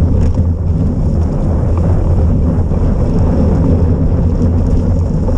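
Tyres hiss and rumble over wet, slushy road.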